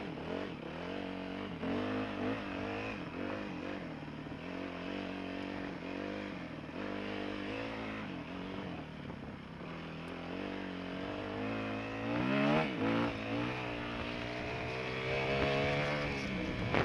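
Tyres rumble over rough dirt.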